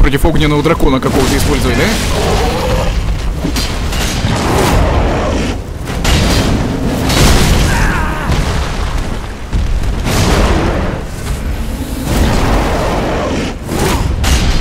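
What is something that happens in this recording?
Heavy blows crash and thud against the ground.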